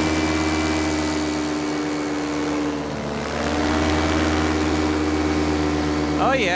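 A motor drones steadily, dipping briefly and then rising again.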